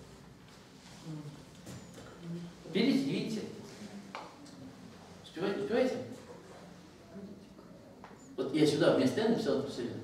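An older woman speaks calmly, explaining in bursts with pauses.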